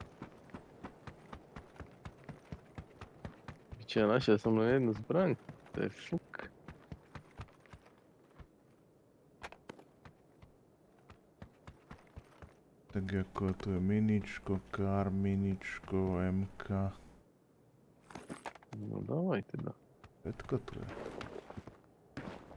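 Quick footsteps run across hard ground.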